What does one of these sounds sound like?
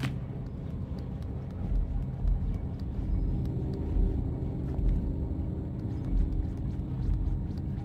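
Small footsteps patter on a hard floor.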